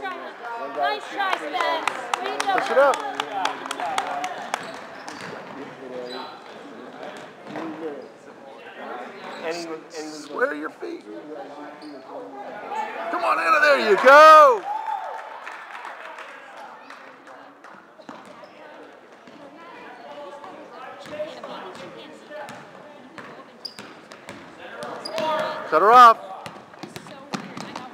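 Girls shout and cheer in a large echoing gym.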